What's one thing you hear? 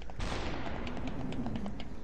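A gunshot fires.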